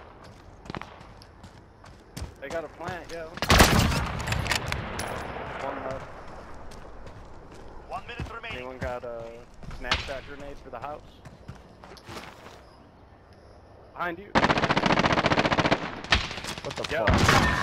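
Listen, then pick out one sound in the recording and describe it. Footsteps thud quickly on dirt and grass.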